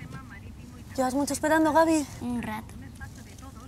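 A young boy speaks quietly, close by.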